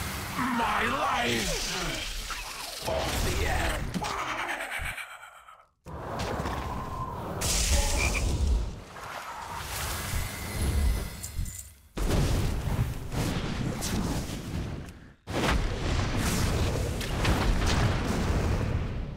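Blows and spell impacts thud repeatedly in a fight.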